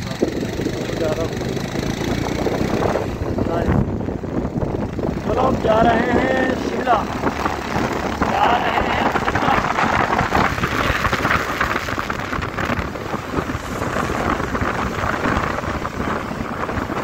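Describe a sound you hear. A vehicle drives along a road, with tyres rumbling on asphalt.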